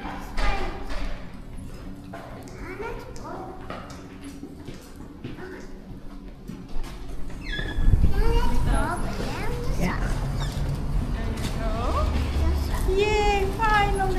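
Stroller wheels roll over a hard floor.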